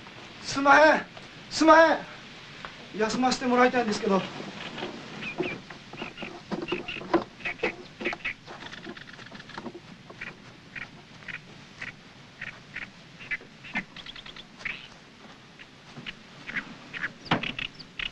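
Footsteps knock on wooden boards.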